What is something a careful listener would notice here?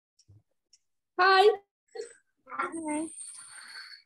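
A young boy speaks close to the microphone.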